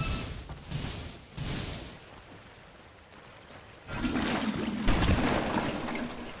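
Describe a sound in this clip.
Game spell effects whoosh and crackle in short bursts.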